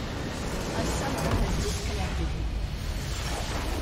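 A crystal structure shatters with a loud magical burst.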